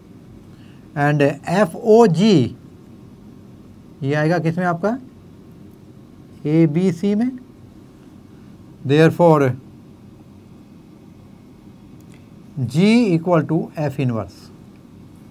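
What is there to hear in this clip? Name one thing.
An elderly man speaks calmly in short phrases, as if explaining.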